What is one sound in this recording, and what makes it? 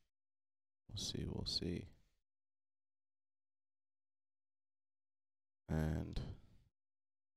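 A young man speaks briefly and casually into a microphone.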